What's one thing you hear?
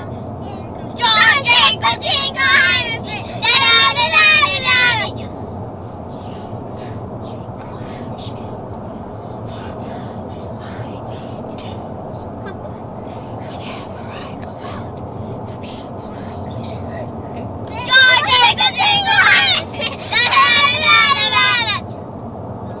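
Young children sing together loudly and excitedly.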